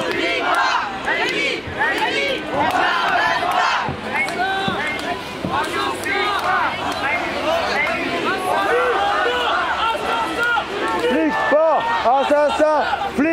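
A large crowd of marchers chants and shouts loudly outdoors.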